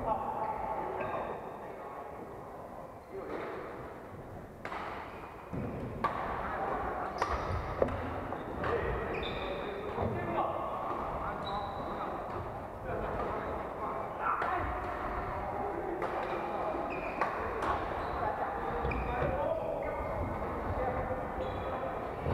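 Shuttlecocks are struck sharply with rackets, echoing in a large hall.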